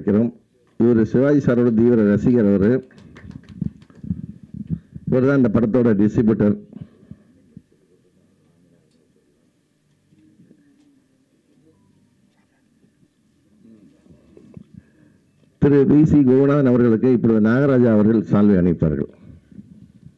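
A middle-aged man speaks into a microphone with animation, heard through a loudspeaker.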